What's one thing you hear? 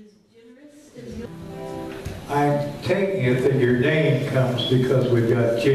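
A fiddle plays a lively tune.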